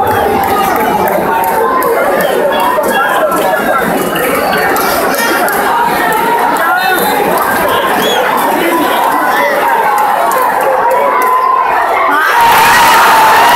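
A large crowd chatters and cheers outdoors at a distance.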